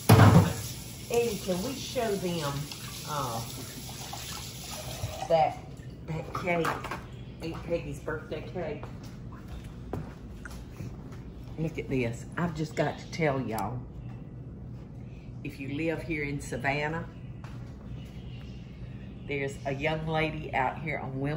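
An elderly woman talks calmly, close by.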